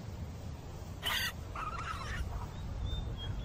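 A pika gives sharp, shrill squeaks.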